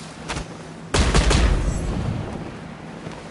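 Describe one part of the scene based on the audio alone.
A heavy blast booms.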